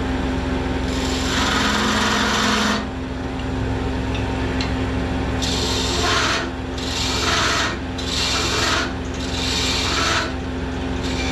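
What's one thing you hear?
A chisel scrapes and hisses against spinning wood in repeated bursts.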